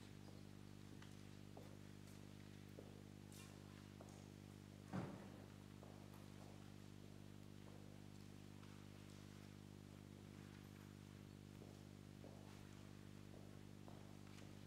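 An organ holds a steady chord in a large echoing hall.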